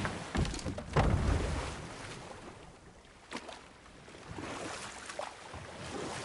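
Oars splash and row through water.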